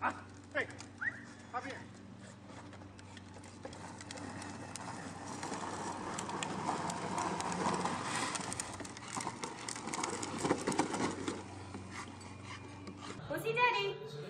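A toy car hums as it rolls along on pavement.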